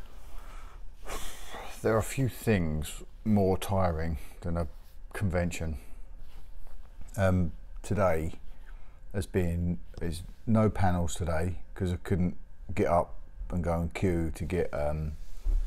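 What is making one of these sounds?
A middle-aged man talks with animation, close to the microphone.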